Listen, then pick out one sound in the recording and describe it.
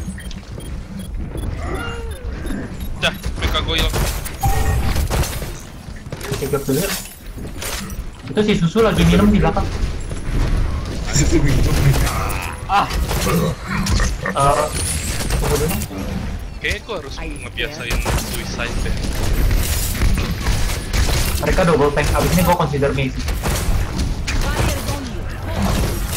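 A weapon fires with heavy, booming shots.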